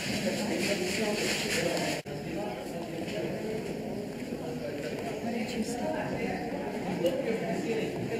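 A crowd of people chatters in the distance, outdoors.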